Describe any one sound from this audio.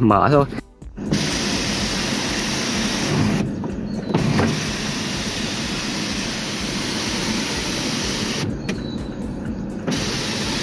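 An electric sunroof motor whirs steadily as the roof slides open and shut.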